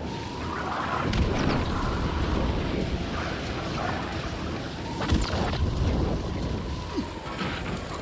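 A flare bursts alight and hisses loudly.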